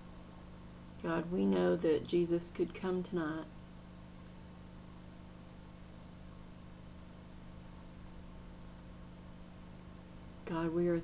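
A middle-aged woman speaks softly and slowly, close to a microphone, with long pauses.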